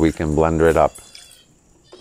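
Water pours into a glass jug.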